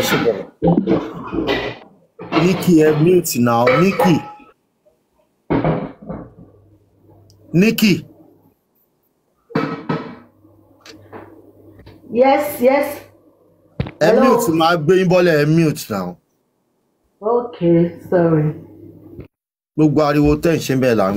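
A middle-aged man talks with animation close to a microphone, with short pauses.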